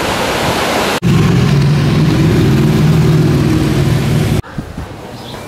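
Motorcycle engines rumble close by as they ride past.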